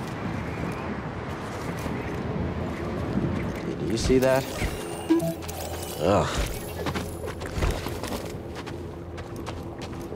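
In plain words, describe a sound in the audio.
Footsteps crunch over rocky ground.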